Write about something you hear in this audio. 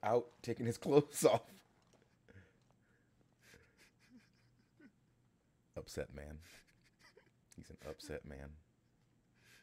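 A man talks and laughs with animation close to a microphone.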